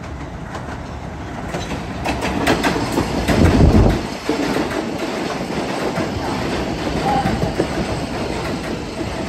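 A train rumbles closer and passes by on the tracks.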